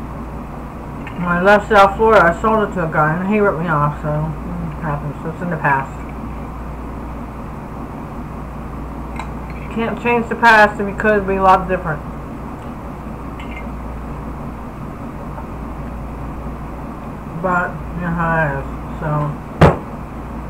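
An older woman talks calmly and close up.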